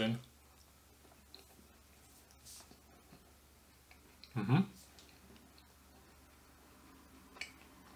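A young man chews food.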